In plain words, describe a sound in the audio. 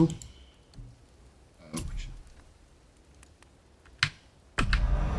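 Short game menu clicks sound.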